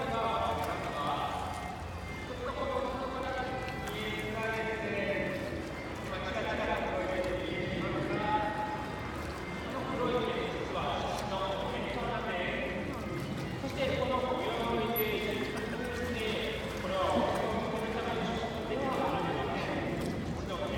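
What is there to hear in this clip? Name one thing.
Water laps gently against the edge of a pool.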